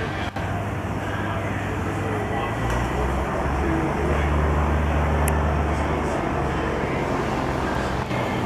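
A small electric fan whirs steadily close by.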